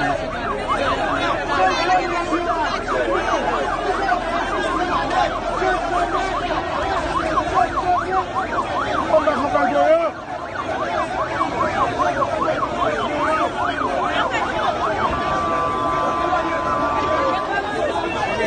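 A large crowd of men shouts and chatters outdoors.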